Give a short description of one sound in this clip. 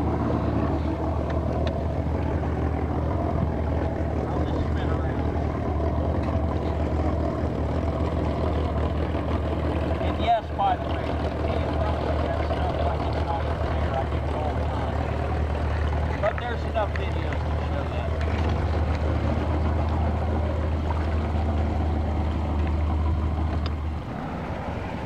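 A small outboard motor hums steadily nearby.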